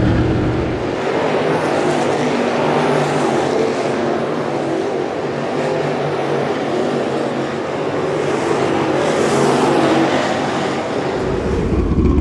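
Race car engines roar from across a track at a distance.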